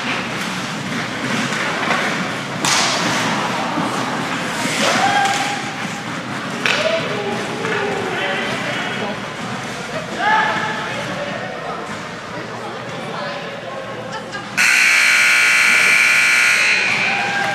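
Skates scrape and swish across ice in a large echoing rink.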